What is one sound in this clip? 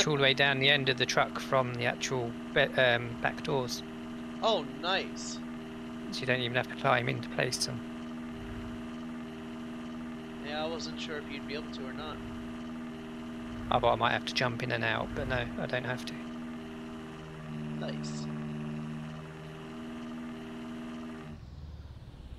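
A small utility vehicle's engine hums steadily.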